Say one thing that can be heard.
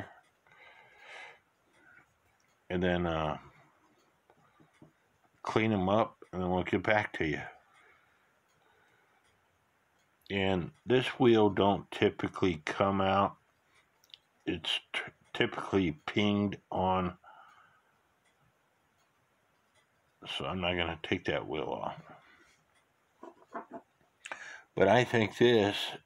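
Small metal clock parts click softly as they are handled.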